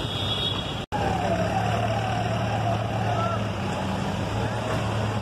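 Car engines hum as vehicles drive along a road.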